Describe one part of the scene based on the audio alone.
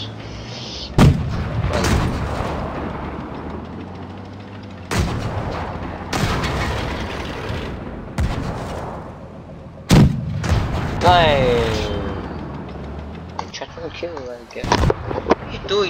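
A tank cannon fires with loud, sharp booms.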